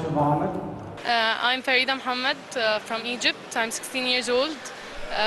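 A young woman speaks calmly into a microphone close by.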